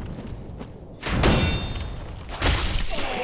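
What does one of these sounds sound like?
A sword swings and strikes with a loud slash.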